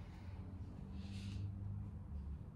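A woman exhales slowly through her mouth.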